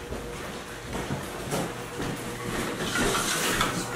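A cardboard box rustles and bumps as a man carries it.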